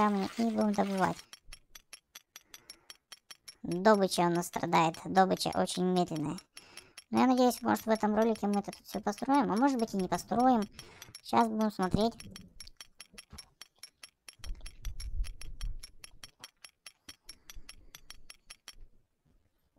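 Pickaxes chip at rock with quick, steady taps.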